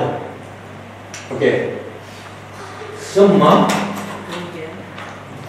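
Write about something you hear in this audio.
A middle-aged man speaks calmly into a microphone, in short phrases.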